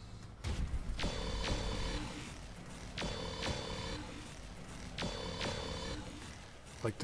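Laser guns fire in repeated buzzing bursts.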